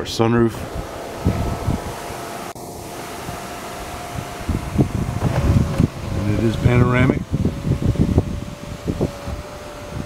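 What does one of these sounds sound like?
A sunroof motor hums steadily as the roof slides open.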